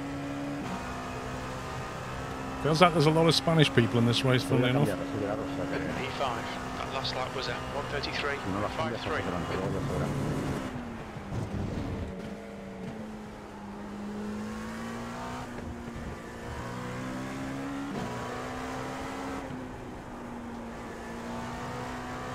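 A racing car engine drones steadily, its pitch rising and falling with gear changes.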